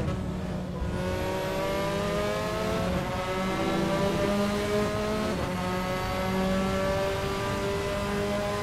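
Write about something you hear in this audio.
A racing car engine revs climb with quick gear shifts.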